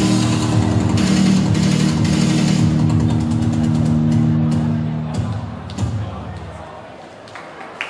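Loud music plays through loudspeakers in a large echoing hall.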